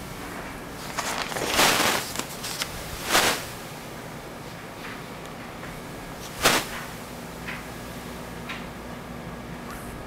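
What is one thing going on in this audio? A cloth wipes and rubs across a glass surface.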